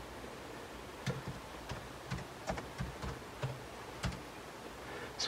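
Keys click on a keyboard as someone types.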